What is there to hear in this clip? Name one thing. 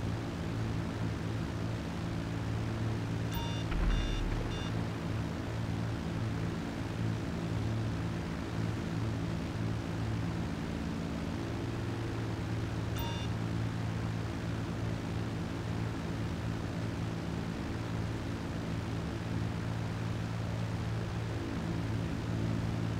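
A propeller plane's engines drone steadily.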